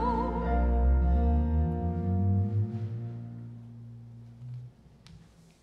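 A band plays a final sustained chord that fades out.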